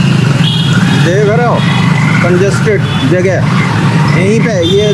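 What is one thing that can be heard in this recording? Horns honk in traffic.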